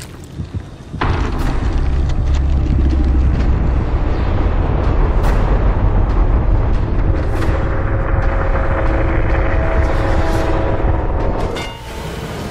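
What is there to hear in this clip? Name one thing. A deep, heavy rumble roars steadily, then cuts off.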